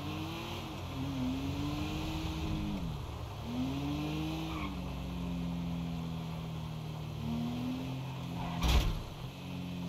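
A car engine revs up and down as the car speeds along.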